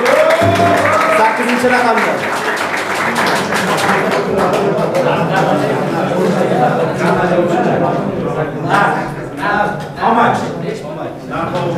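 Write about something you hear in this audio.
A man speaks to an audience in a room.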